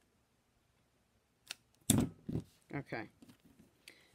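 Scissors snip through ribbon.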